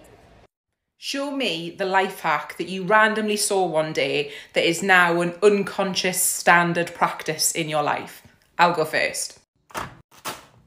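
A woman speaks with animation close to the microphone.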